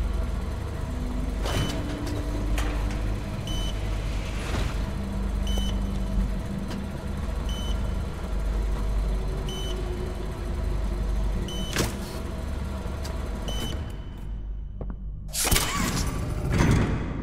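Machinery hums low and steadily.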